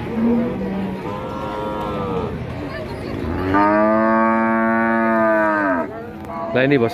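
A cow moos loudly and long.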